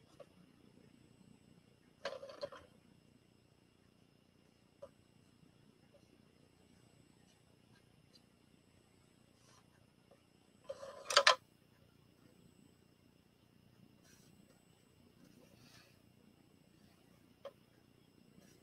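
A paintbrush softly scrapes across a plate.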